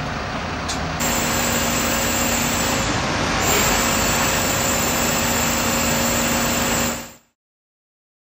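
Water sprays hard from a fire hose in a steady hiss.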